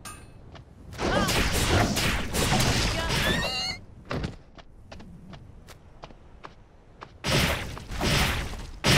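Sword slashes whoosh and clash in loud bursts of combat.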